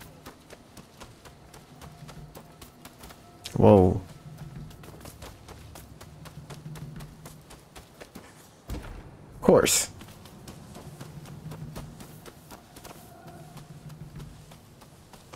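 Footsteps run quickly over stone and grass.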